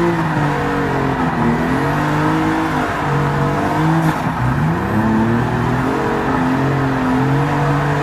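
Tyres screech as a car slides.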